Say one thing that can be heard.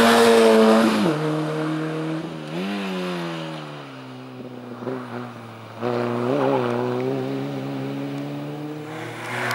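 A car engine fades into the distance.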